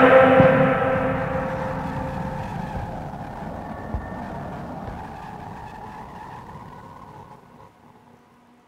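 Steam hisses loudly from a vent and slowly fades.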